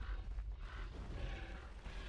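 Game spell effects whoosh and crackle in a brief fight.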